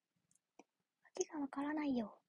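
A young woman speaks close to a phone microphone in a high, sing-song voice.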